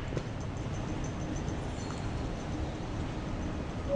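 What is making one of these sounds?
Suitcase wheels roll along a hard floor in a large echoing hall.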